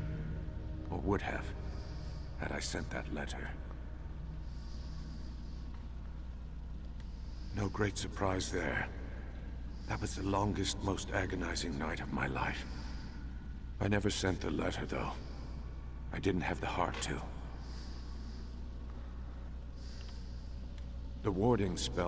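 A man speaks calmly in short phrases with pauses.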